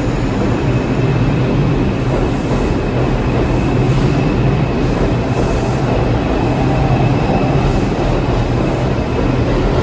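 A subway train rumbles and rattles loudly past along the track.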